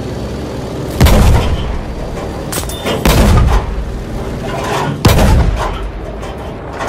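Bombs explode with deep booms.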